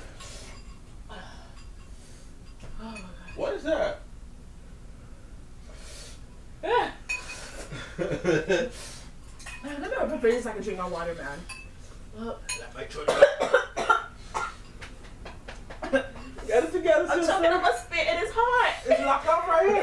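A young woman talks and exclaims close by.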